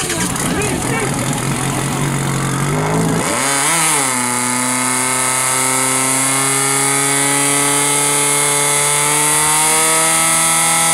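A pump engine roars and revs up loudly.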